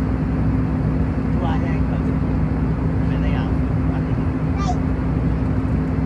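Engine noise drones steadily inside an airliner cabin.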